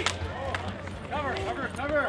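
A street hockey stick slaps a ball on asphalt.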